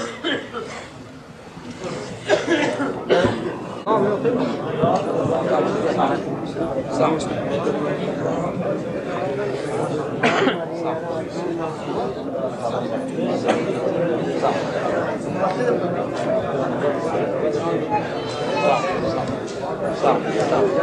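A crowd of men murmurs and talks all around, close by.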